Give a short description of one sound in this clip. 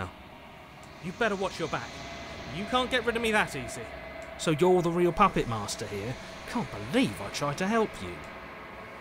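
A young man speaks expressively, close to a microphone.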